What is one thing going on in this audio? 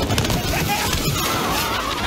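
Fireworks burst and crackle loudly.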